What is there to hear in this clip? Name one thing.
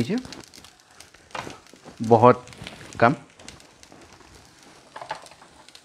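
A spatula scrapes and stirs food in a pan.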